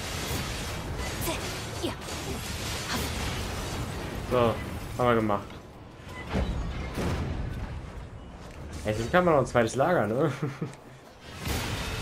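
A huge metal machine topples and crashes down with a deep rumble.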